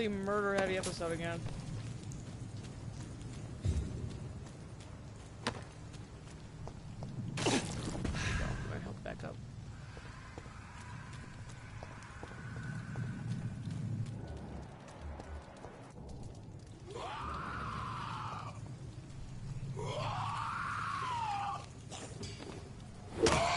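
Footsteps hurry over wet stone.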